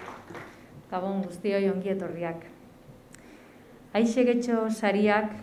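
A woman speaks calmly over a loudspeaker in a large hall.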